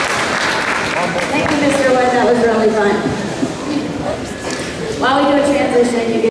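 A band plays brass and woodwind instruments together in a large echoing hall.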